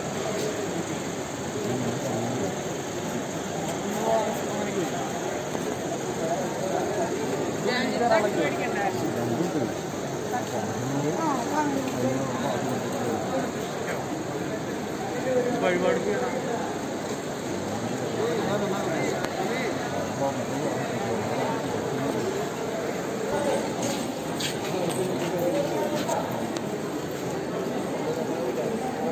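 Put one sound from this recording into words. A crowd of men and women murmurs and talks outdoors.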